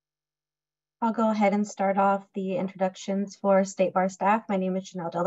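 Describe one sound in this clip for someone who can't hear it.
A woman speaks steadily over an online call.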